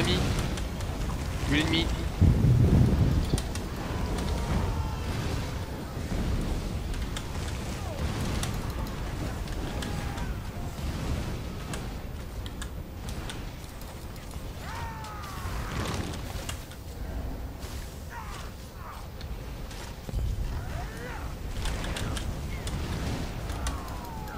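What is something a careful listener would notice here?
Fiery spells blast and crackle in a battle.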